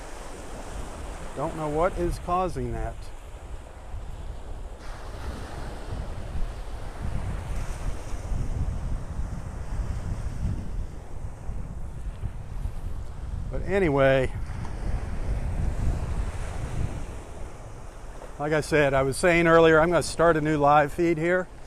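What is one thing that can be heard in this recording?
Small waves wash and break gently onto the shore.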